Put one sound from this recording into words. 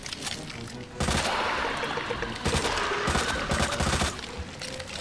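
Gunshots bang in a game.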